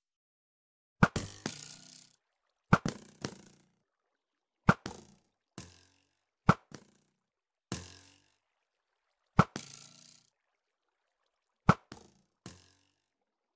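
A bow twangs sharply as arrows are shot, again and again.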